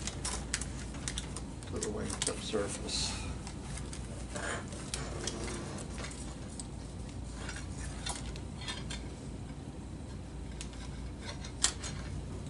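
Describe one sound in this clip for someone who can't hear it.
Stiff plastic film crinkles and rustles as it is handled.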